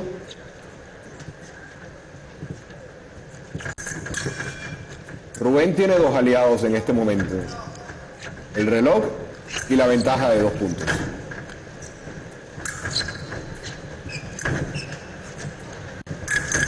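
Fencers' feet tap and shuffle on a metal strip.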